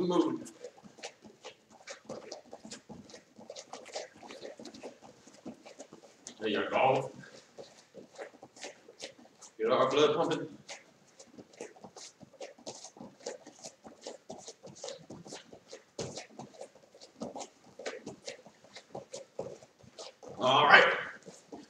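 Bare feet thump and shuffle on a mat.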